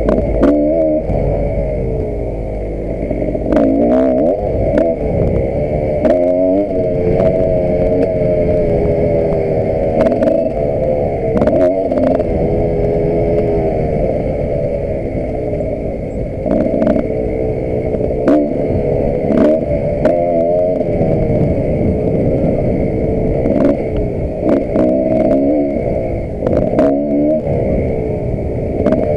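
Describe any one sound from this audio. Wind buffets the rider's microphone.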